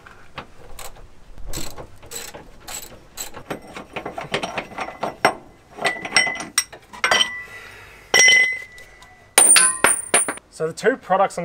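Metal tools clink and clatter against metal parts.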